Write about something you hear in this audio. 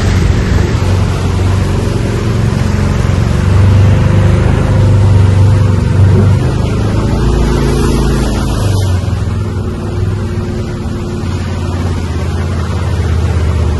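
A small vehicle's engine hums steadily while driving.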